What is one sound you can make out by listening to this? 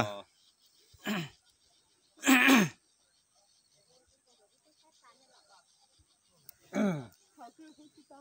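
An elderly man lets out a loud, satisfied sigh.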